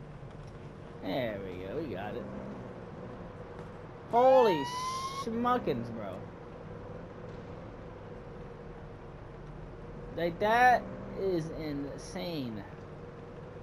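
A police siren whoops in short bursts.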